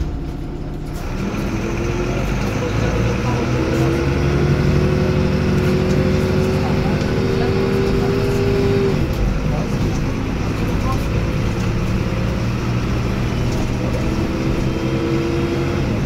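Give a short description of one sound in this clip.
A bus engine drones and whines, rising in pitch as the bus pulls away.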